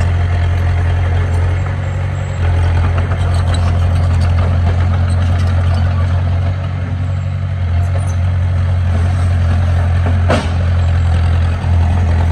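Bulldozer tracks clank and squeak as the machine pushes dirt.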